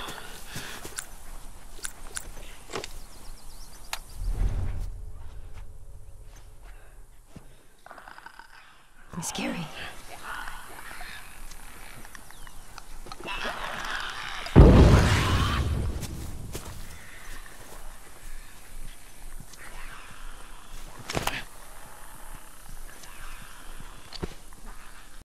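Footsteps shuffle through grass and over stone.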